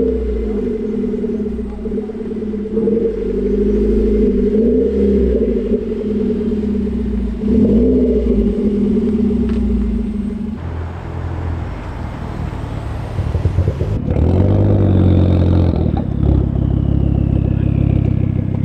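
A car engine idles with a deep, throbbing exhaust rumble.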